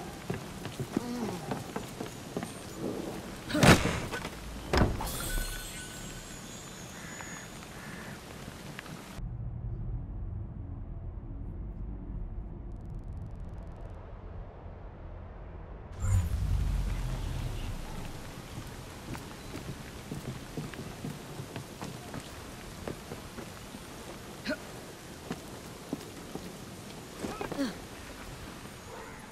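Footsteps tread on stone and wooden boards.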